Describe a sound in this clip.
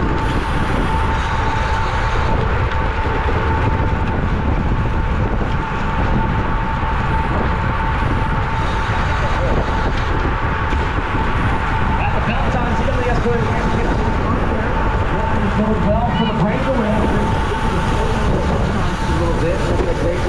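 Bicycle tyres hum steadily on the road.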